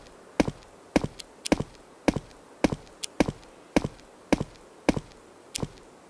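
Footsteps walk at a steady pace on hard ground.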